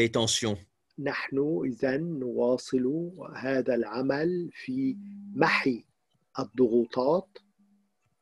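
An elderly man talks with animation.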